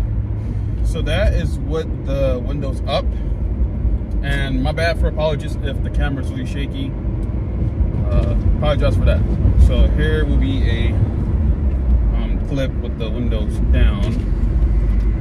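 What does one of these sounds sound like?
A young man talks casually and close by.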